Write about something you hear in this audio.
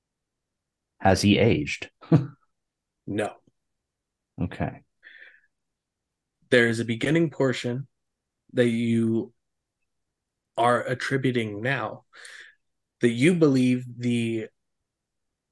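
A man speaks with animation over an online call microphone.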